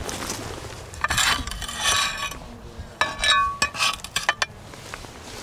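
Ceramic tiles clink and clatter against each other.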